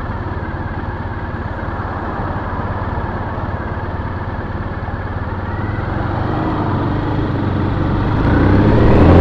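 Cars and a truck pass by on a road nearby.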